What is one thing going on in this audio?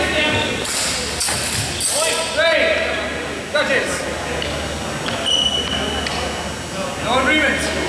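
Men shout out in a large echoing hall.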